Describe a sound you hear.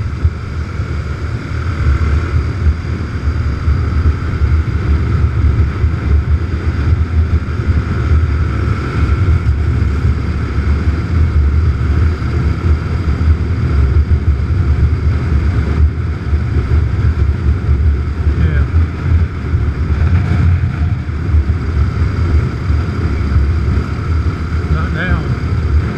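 Wind buffets and rushes loudly past.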